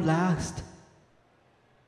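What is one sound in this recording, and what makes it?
A young man speaks into a microphone, heard through loudspeakers.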